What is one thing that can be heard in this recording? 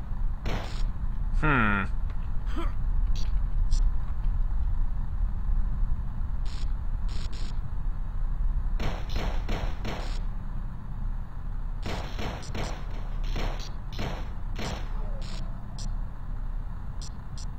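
A pistol fires repeatedly in sharp bursts.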